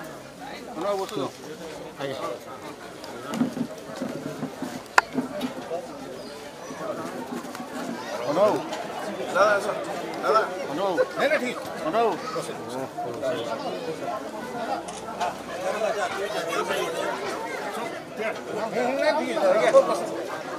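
A man speaks into a microphone nearby.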